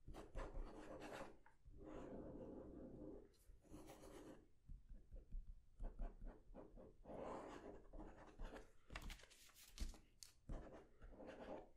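A pen scratches on paper close by.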